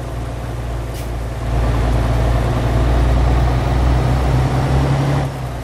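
A truck's diesel engine drones steadily, growing louder as it pulls.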